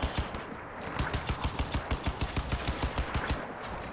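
A rifle fires a rapid burst of shots.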